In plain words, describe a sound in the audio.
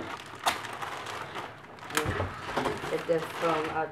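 Foam packaging squeaks as it is moved.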